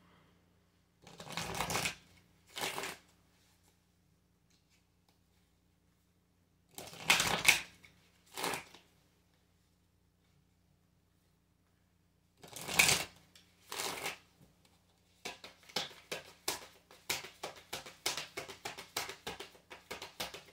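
Playing cards are shuffled and riffled with quick flicking.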